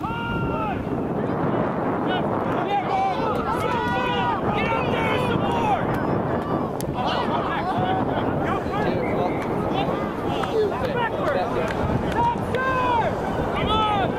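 A crowd of onlookers cheers and shouts excitedly.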